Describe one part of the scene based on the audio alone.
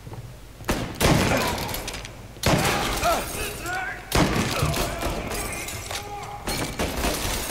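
A shotgun fires loud blasts that echo in a large room.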